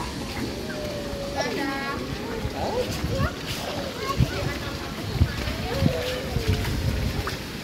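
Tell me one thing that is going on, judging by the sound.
Young children call out and chatter nearby.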